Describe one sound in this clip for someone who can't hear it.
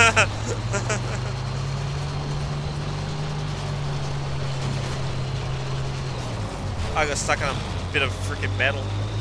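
A tank engine rumbles low and steady as the tank rolls forward.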